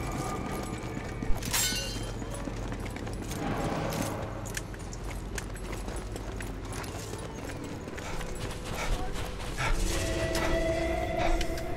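Footsteps crunch quickly over snow and stone.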